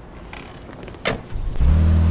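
A car door shuts.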